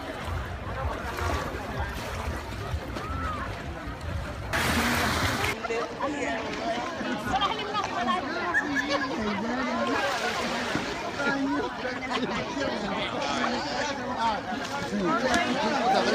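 A crowd of men, women and children chatter and call out nearby and far off.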